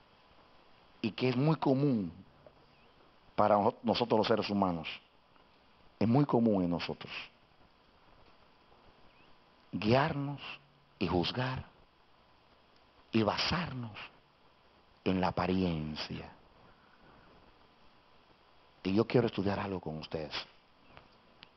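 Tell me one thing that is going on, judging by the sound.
A middle-aged man preaches with emotion into a microphone, in bursts with pauses between them, heard over a loudspeaker.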